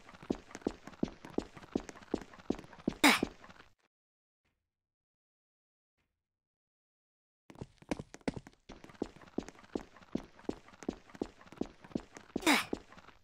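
Quick footsteps patter steadily on a hard floor.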